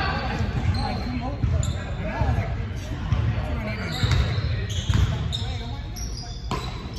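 Basketballs bounce on a wooden floor in a large echoing hall.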